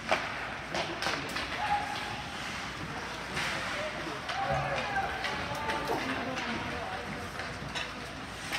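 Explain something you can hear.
Skates scrape and hiss across ice in an echoing rink.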